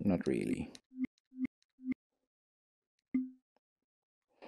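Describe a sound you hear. A cartoon frog gives short, low croaking blips.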